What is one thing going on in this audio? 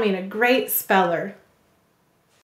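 A young woman speaks cheerfully, close to a microphone.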